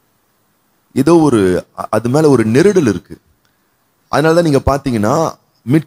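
A man sings into a microphone with a smooth, wavering voice.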